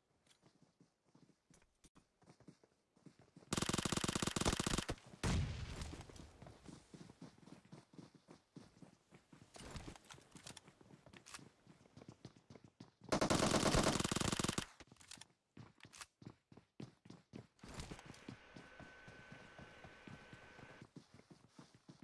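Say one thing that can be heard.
Footsteps patter quickly over ground and floors.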